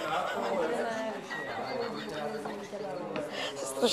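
A middle-aged woman laughs loudly.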